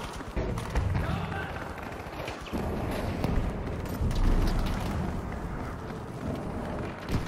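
Gunfire cracks and booms repeatedly.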